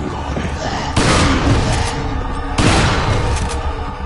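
A shotgun fires loudly twice.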